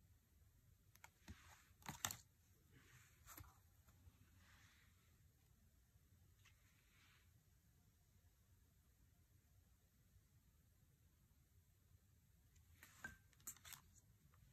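Playing cards rustle and tap as they are laid down on a cloth.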